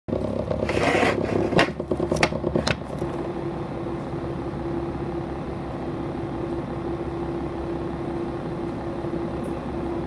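A stopped train's engine idles with a steady low hum.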